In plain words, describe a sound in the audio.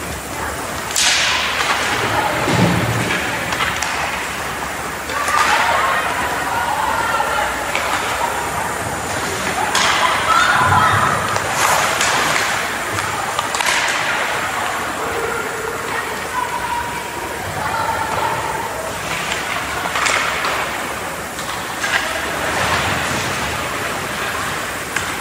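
Hockey sticks and a puck clack sharply on the ice.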